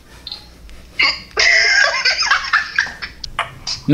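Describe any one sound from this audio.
A young woman laughs loudly over an online call.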